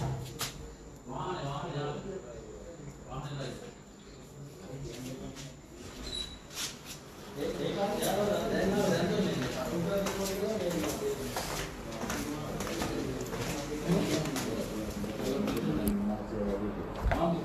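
A man speaks close to a phone microphone, tense and agitated.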